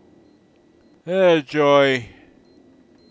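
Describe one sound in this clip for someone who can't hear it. A man's voice rises and falls in a short, excited call close to a microphone.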